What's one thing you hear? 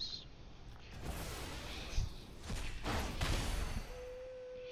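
A magical blast whooshes and rumbles.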